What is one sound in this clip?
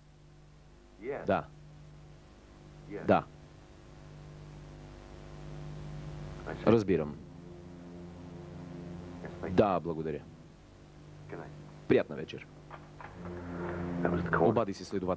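A man speaks in short, quiet phrases into a phone.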